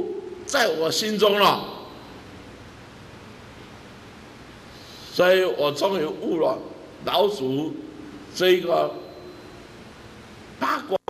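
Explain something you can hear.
A middle-aged man speaks with animation into a microphone, pausing between short phrases.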